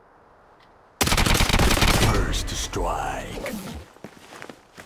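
A smoke grenade bursts with a loud rushing hiss.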